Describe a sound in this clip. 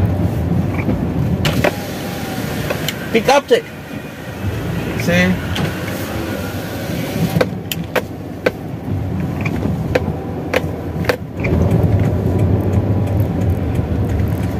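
A car drives slowly along a wet road, heard from inside, with tyres hissing.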